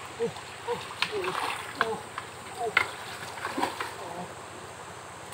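Water splashes as a man moves through a shallow stream.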